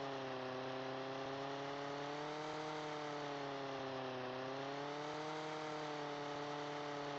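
A helicopter engine hums steadily, its pitch wavering slightly.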